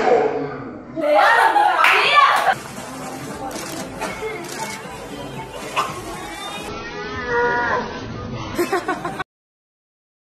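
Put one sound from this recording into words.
A young woman squeals excitedly.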